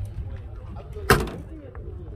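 A car door handle clicks.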